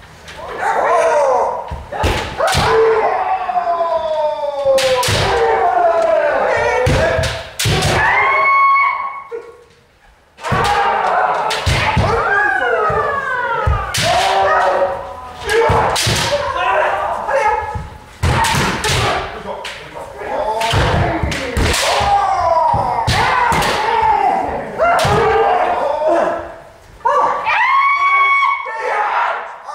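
Kendo fencers shout drawn-out battle cries in a large echoing hall.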